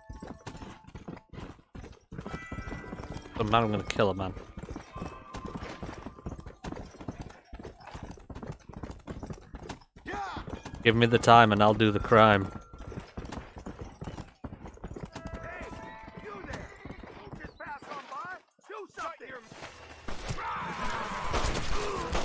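Horses' hooves thud at a steady gallop on dry ground.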